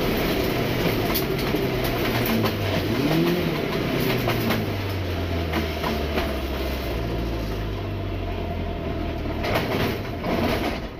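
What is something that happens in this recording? Gravel and stones rattle against the underside of a car.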